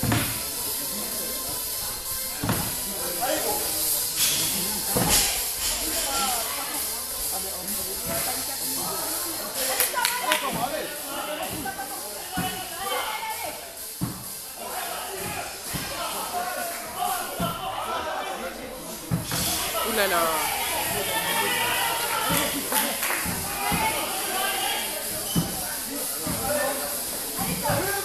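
Barbells and weights thud on the floor.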